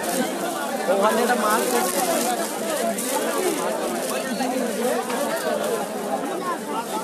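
A crowd of people chatter loudly nearby.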